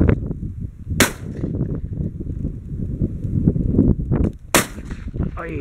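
A shotgun fires twice outdoors.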